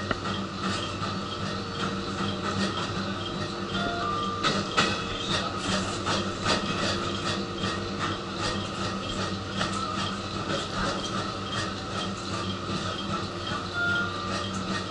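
Metal fittings rattle and click as the train rocks.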